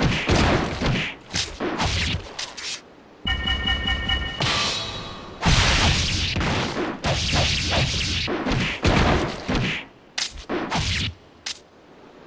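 Swords clash and strike in quick, loud bursts.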